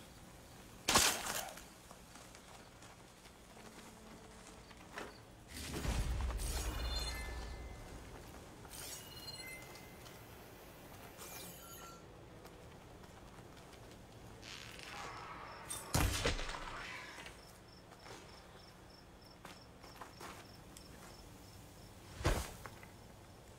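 Sharp impacts and blasts sound in a game.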